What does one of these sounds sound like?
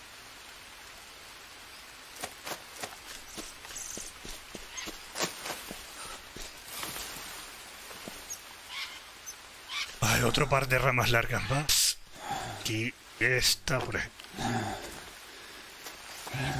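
Palm leaves rustle as they are gathered.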